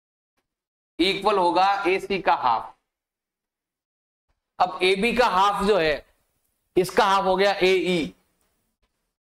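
A man explains calmly into a close microphone, in short bursts.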